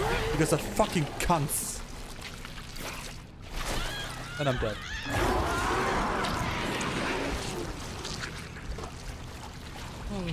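A young woman grunts and screams in struggle.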